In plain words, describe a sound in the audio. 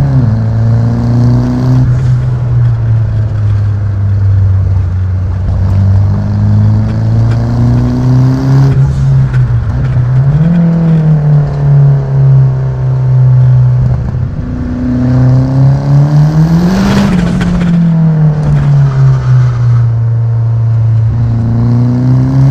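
A car engine hums steadily and revs up and down as gears change.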